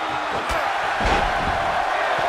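A body slams down onto a wrestling ring mat with a thud.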